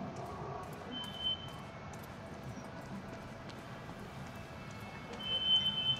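Footsteps tap on a hard stone floor.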